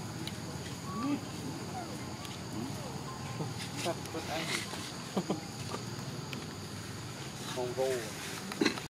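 A young macaque squeals.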